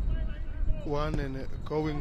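A player kicks a football hard.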